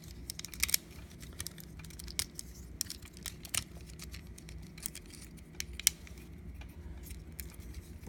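Plastic parts of a toy figure click and clack as hands handle it up close.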